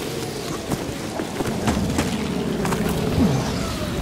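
Footsteps clank on a corrugated metal roof.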